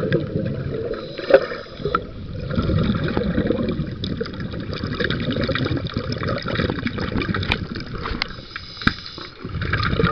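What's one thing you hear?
A boat propeller churns the water with a low, muffled underwater rumble.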